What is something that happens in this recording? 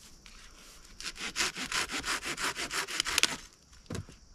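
A hand saw cuts through wood with quick, rhythmic strokes.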